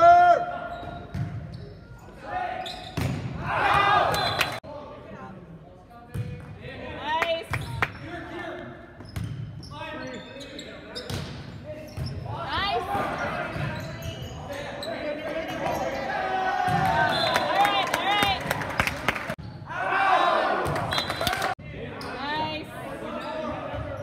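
Young men shout and call out to each other across an echoing gym.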